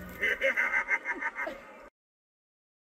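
A clown animatronic cackles loudly.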